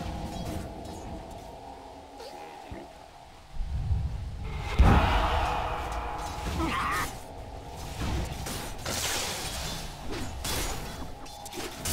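Magic spells blast and crackle in a fight.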